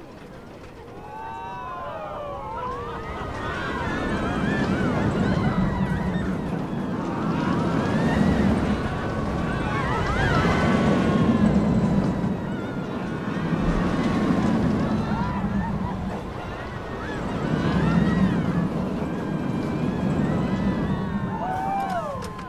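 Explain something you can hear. A roller coaster train roars and rattles along its track at speed.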